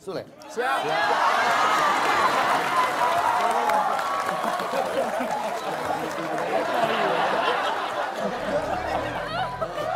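A large audience laughs loudly and cheers.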